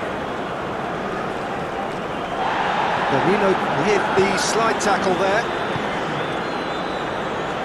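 A large stadium crowd roars steadily, swelling for a few seconds before settling.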